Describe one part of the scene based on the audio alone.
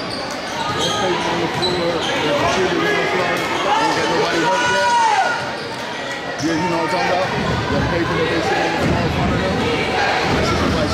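Spectators chatter in a large echoing gym.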